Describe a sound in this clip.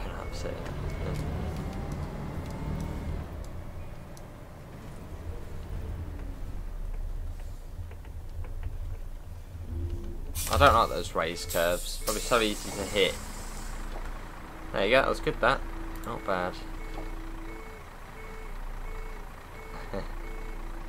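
A bus engine rumbles low and steadily.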